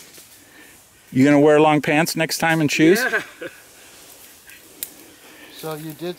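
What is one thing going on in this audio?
Footsteps rustle through dry grass.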